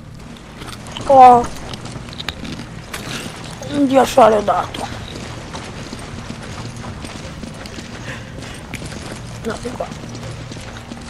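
A young woman speaks in short bursts, close to a microphone.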